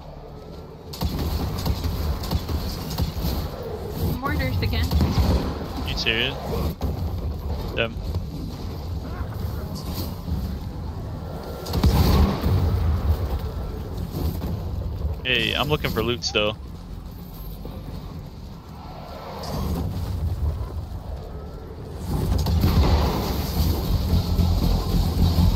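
Game gunfire and explosions boom and crackle.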